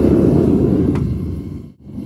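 A metal lid clanks down onto a furnace.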